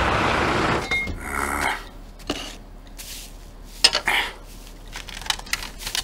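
Objects clatter and knock as a man rummages in a cupboard.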